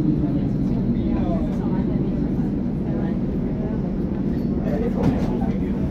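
A train rolls slowly to a stop.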